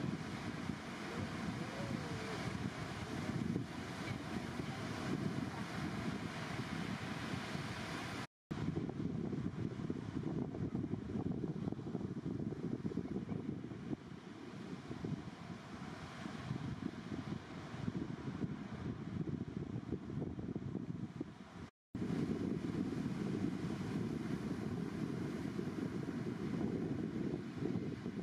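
Waves break and roll in steadily outdoors, with a low rushing roar.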